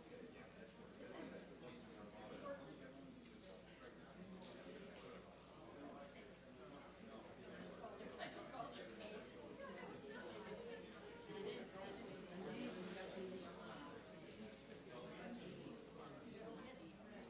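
Many people chatter in a large room.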